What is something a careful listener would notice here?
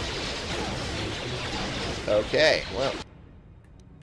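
A loud energy blast bursts.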